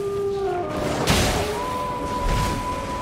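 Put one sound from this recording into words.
Water splashes loudly as a wolf leaps through a stream.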